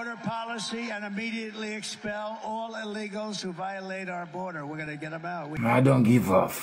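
An elderly man speaks steadily into a microphone.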